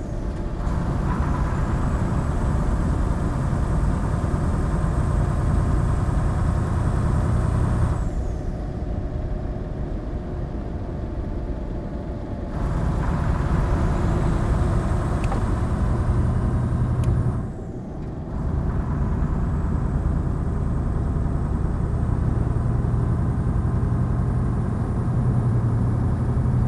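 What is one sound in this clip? A truck engine drones steadily, easing off briefly between gear changes.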